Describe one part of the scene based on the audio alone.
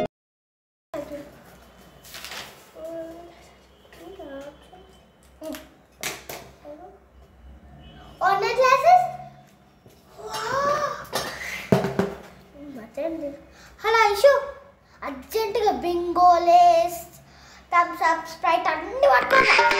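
A young girl talks animatedly close by.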